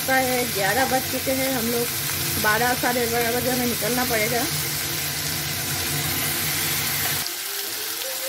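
Vegetables sizzle softly in a hot pan.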